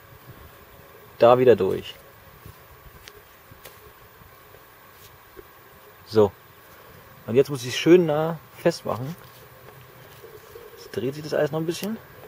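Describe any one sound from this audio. A cord rubs and rustles against bark as it is pulled tight.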